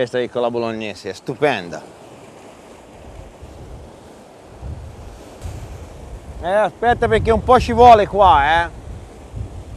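A man speaks with animation close by, outdoors.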